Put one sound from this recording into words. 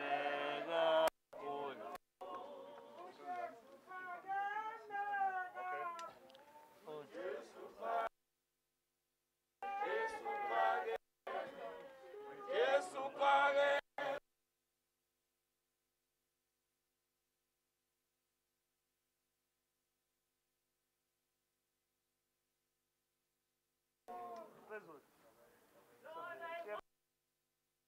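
A group of mourners sings a slow, mournful hymn nearby.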